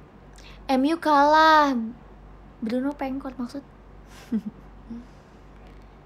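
A young woman speaks close to a microphone in a soft, playful voice.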